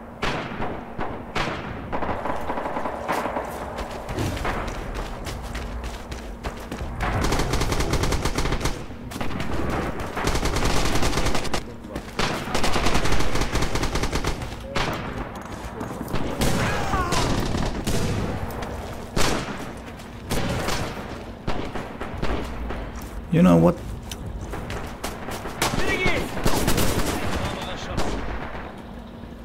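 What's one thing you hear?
Gunshots crack repeatedly nearby and far off.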